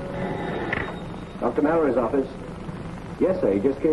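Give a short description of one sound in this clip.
A man speaks into a telephone.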